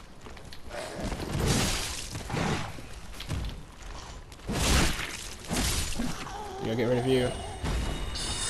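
Sword blows swish and strike in a fight.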